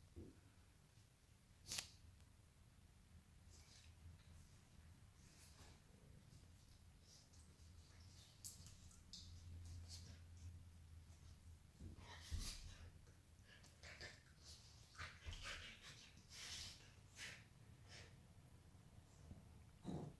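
Two dogs scuffle and tussle playfully on a soft mat.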